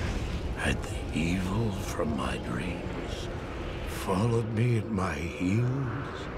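A middle-aged man speaks in a strained, shaky voice close by.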